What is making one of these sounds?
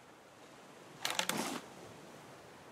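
A fishing reel whirs briefly as a line is pulled in.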